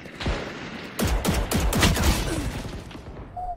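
Rapid video game gunfire cracks.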